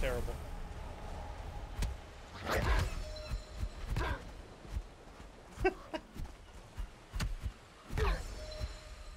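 Weapons strike with sharp clashing hits.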